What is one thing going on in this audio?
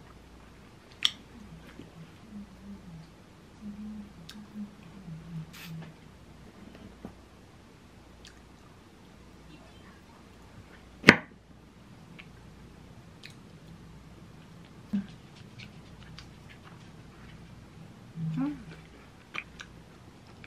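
A spoon clinks sharply against a plate now and then.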